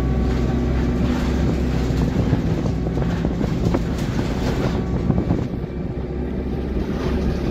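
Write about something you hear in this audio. Loose fittings rattle and clatter as the bus moves.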